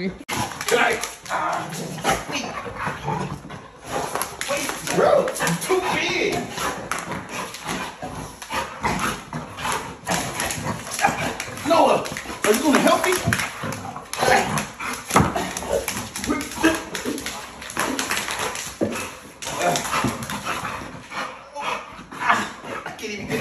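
Dogs' paws scrabble and thump on the floor.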